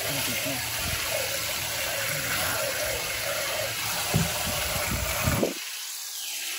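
Tap water splashes steadily into a metal bowl.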